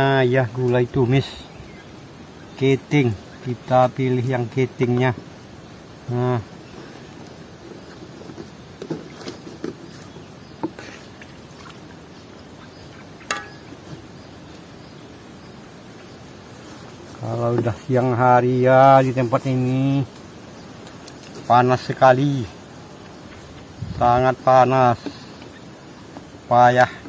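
An elderly woman speaks calmly and close by.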